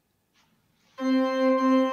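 An organ plays a sustained chord.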